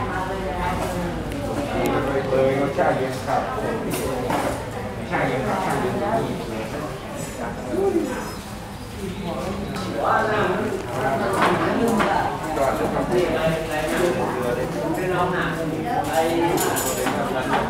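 Several men and women talk and chatter nearby in a room with some echo.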